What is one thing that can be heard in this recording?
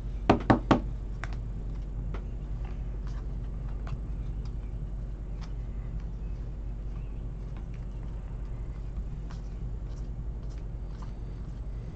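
Trading cards slide and flick against each other as they are shuffled.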